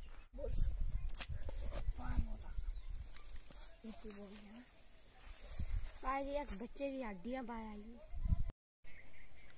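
A boy talks calmly close by.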